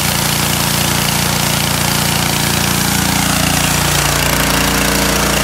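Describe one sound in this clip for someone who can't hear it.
A pressure washer engine drones steadily.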